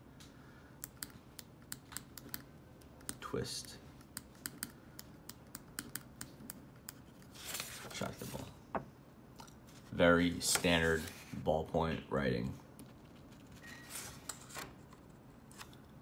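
A ballpoint pen scratches quickly across paper.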